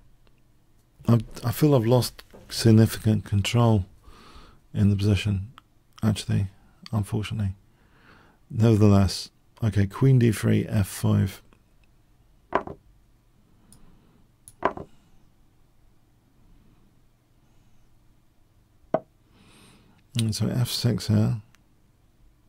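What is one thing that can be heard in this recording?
An older man talks with animation, close to a microphone.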